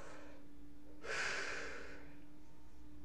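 A young man exhales sharply close by.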